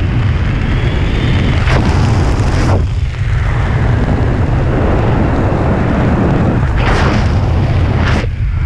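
Strong wind rushes and buffets loudly past a microphone.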